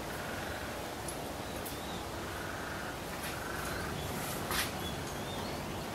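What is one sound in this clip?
Waves wash gently against a rocky shore.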